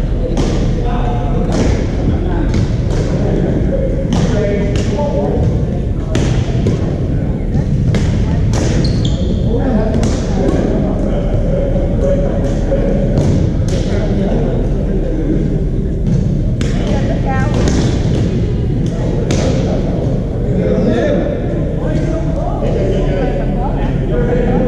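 A dull low rumble of many people playing fills a large echoing hall.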